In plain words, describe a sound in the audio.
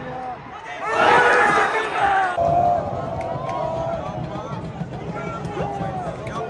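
A crowd of fans near the microphone erupts into a loud cheer.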